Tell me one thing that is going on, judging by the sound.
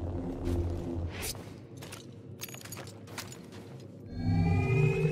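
A lightsaber hums with a low buzz.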